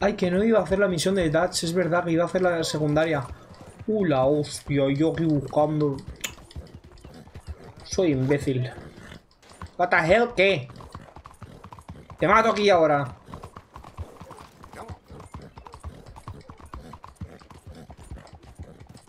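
A horse's hooves clop on a dirt road.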